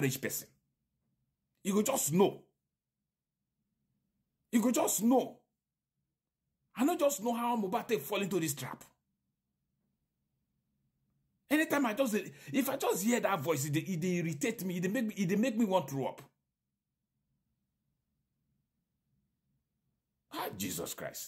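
A middle-aged man speaks with animation close to a microphone, in short bursts between pauses.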